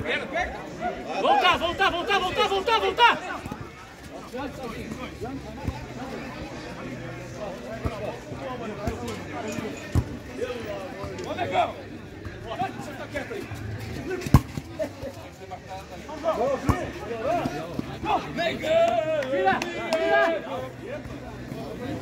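Men shout loudly to each other from across an open field.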